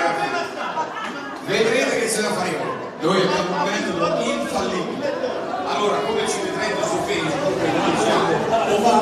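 A crowd of people chatters loudly.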